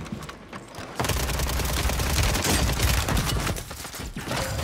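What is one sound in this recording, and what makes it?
Gunfire bursts out loudly.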